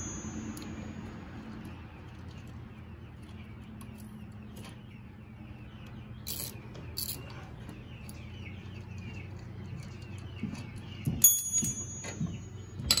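A ratchet wrench clicks rapidly as it turns a bolt.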